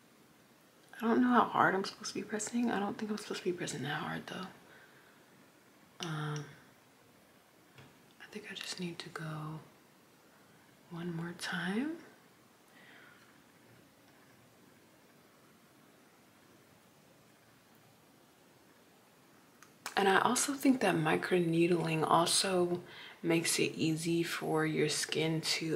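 A young woman speaks calmly and close by, in short bursts with pauses.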